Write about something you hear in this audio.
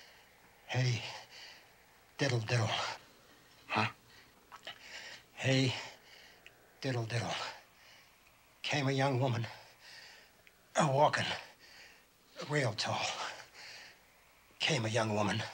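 An elderly man gasps and speaks in short, strained bursts close by.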